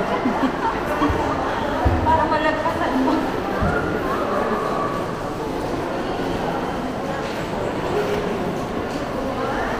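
Many people chatter indistinctly in a large echoing hall.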